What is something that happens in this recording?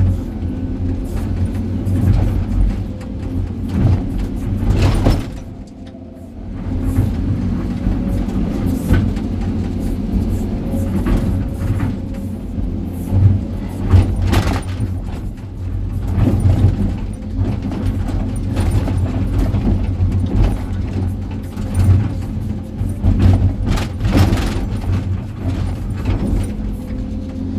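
A diesel engine rumbles loudly and steadily close by.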